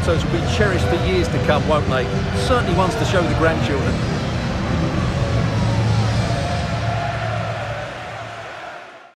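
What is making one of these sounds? A large stadium crowd cheers and roars, fading toward the end.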